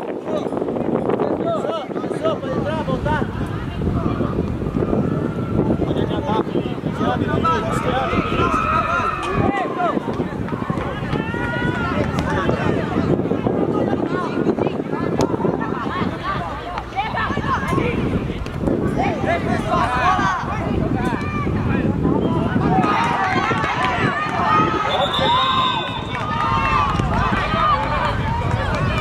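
Boys shout and call out to each other across an open field.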